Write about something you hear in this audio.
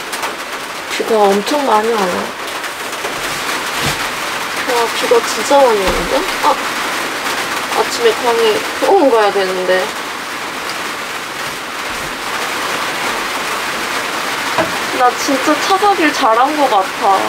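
A young woman speaks casually and softly up close.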